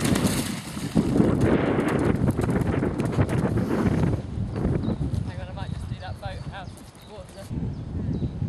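A horse's hooves thud on the ground at a gallop.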